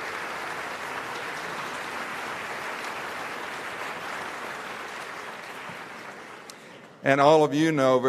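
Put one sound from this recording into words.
An audience applauds in a large hall, fading away.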